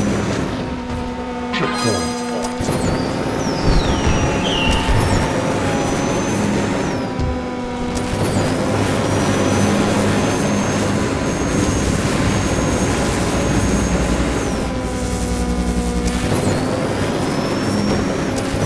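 A race car's engine hums steadily.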